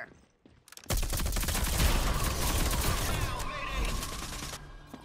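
Gunshots rattle in rapid bursts.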